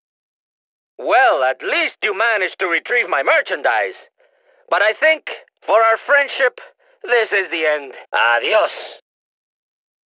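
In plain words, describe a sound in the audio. A man speaks firmly, close by, in short phrases.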